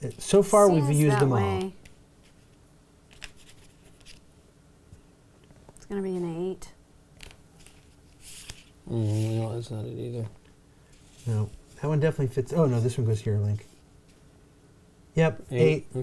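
Small game pieces tap and slide on a cardboard board.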